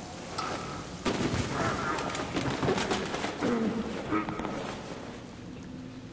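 A loud scuffle with heavy thuds breaks out close by.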